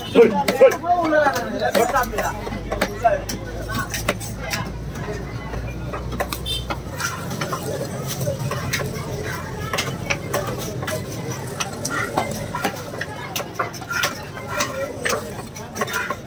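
A knife chops through fish on a wooden block with repeated thuds.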